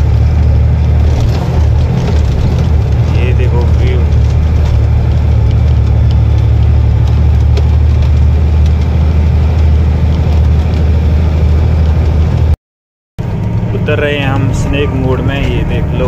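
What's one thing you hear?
Tyres roll over an uneven road.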